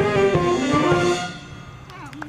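A band plays music and comes to a final chord.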